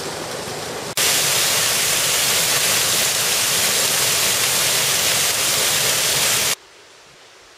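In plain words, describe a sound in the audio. A waterfall splashes and roars steadily up close.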